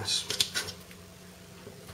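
Food scraps are scraped across a cutting board.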